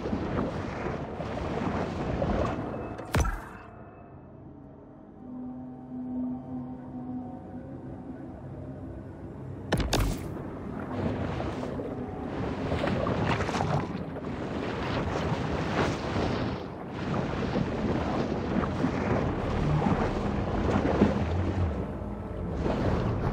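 Water swishes and gurgles as a fish swims underwater.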